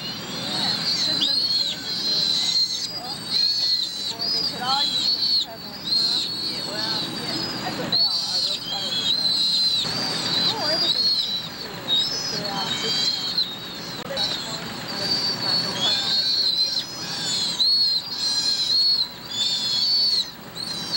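A sea otter pup squeals in high-pitched cries, close by.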